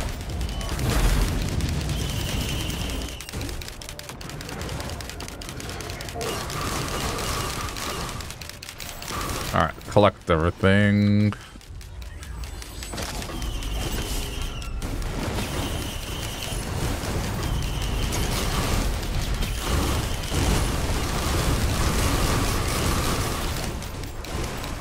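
Game sound effects chime and whoosh as a character moves and casts spells.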